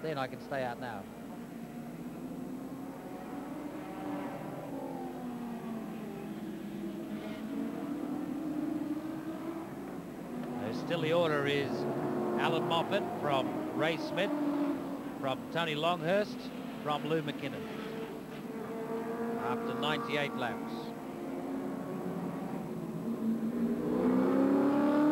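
Racing car engines roar and whine as cars speed past.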